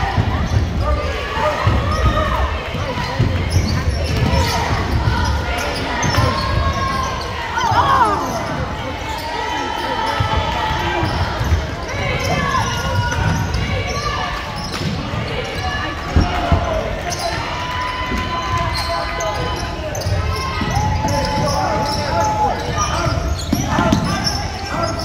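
A basketball bounces with dull thumps on the floor.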